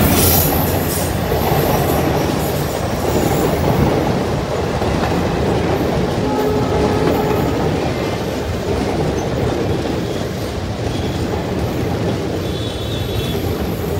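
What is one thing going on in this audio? Train carriages rumble and clatter steadily over the rails.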